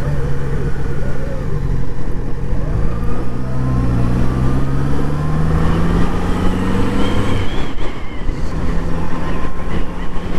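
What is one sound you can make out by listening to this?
A motorcycle engine hums and rises in pitch as it speeds up, then drops as the rider slows.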